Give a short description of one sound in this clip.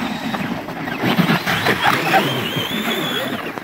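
A remote-control car tumbles and crashes onto the snow.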